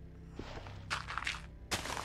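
A shovel digs out a block of dirt with soft crunches.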